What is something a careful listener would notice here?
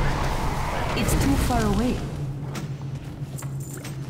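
Magic spells crackle and whoosh during a fight.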